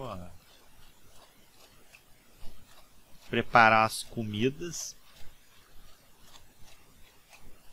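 Footsteps tread softly on a wooden floor.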